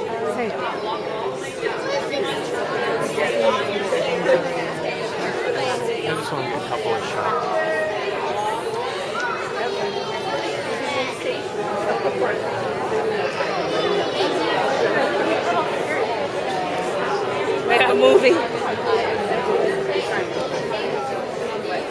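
Many young children chatter and murmur all around in an echoing hall.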